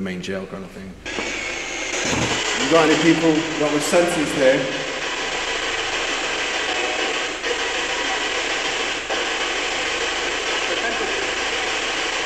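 A handheld radio device hisses with rapid, sweeping static.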